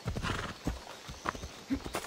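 Horse hooves clop on a dirt path.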